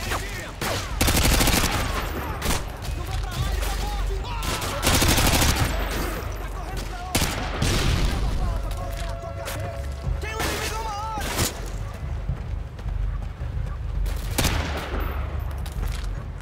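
Rapid rifle fire bursts out in loud volleys.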